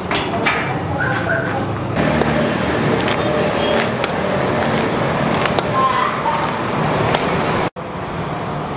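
A woman's walking stick taps on pavement outdoors.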